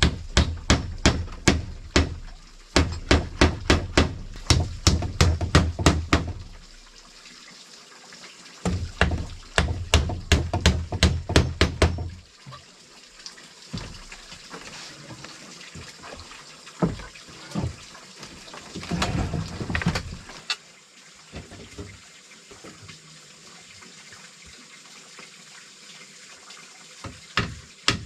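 A hammer drives nails into wood in quick bursts of sharp blows.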